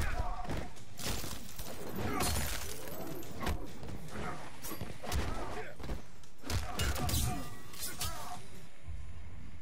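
Punches and kicks thud and smack in a fast fight.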